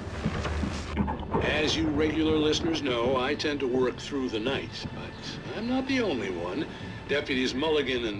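A man speaks calmly through a radio loudspeaker.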